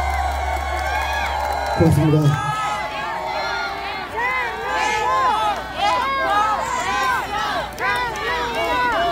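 A large crowd sings together loudly outdoors.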